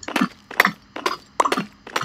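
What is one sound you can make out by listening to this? Stone blocks crumble as they are broken.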